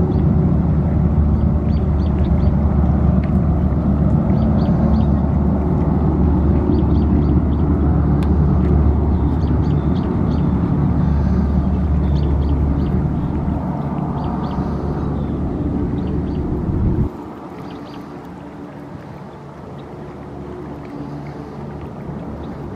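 A hovercraft's engines roar loudly and steadily.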